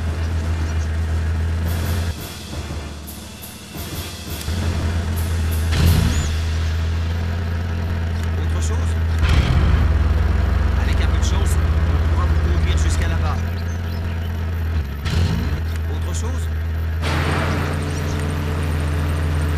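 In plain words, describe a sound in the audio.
Truck engines rumble steadily nearby.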